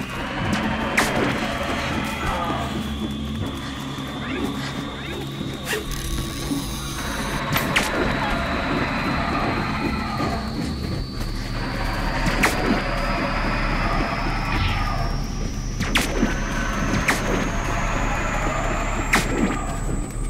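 Sharp hits and blasts ring out in a fight.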